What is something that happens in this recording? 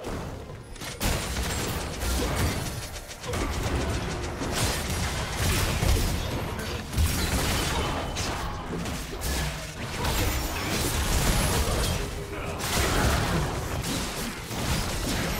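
Magic blasts crash and whoosh as figures fight in a video game.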